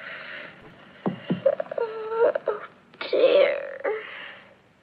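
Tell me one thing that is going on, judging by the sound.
A young girl exclaims in dismay, close by.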